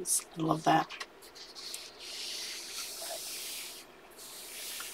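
A page of a book turns over with a papery rustle.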